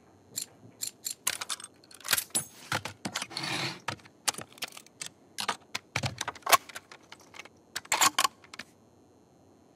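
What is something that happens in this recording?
Metal parts of a rifle click and clatter as the rifle is handled.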